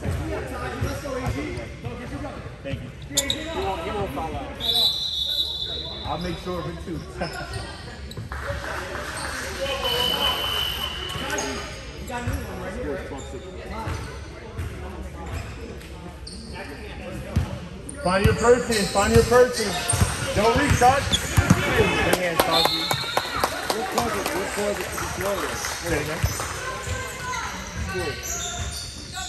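Children and adults shout and call out in a large echoing gym.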